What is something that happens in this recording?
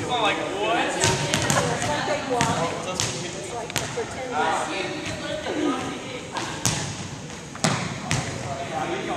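A volleyball thumps as it is hit and bounces.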